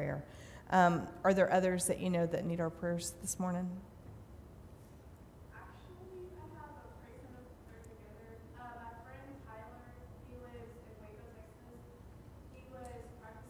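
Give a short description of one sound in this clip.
An older woman speaks calmly into a microphone.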